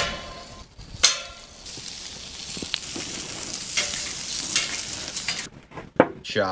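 Meat sizzles loudly on a hot grill.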